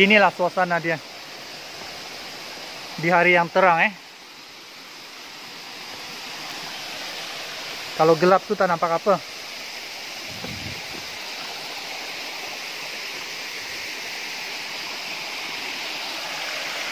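A small waterfall splashes steadily into a rocky stream.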